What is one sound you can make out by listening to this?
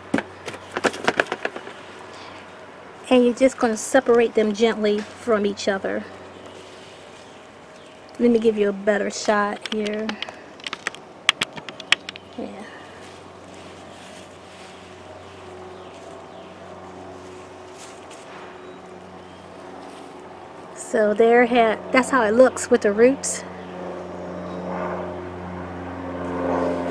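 Gloved hands press and crumble loose potting soil.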